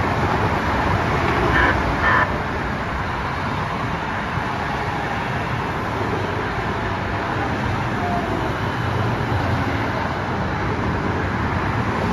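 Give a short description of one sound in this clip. A light rail train rumbles in and slows to a stop.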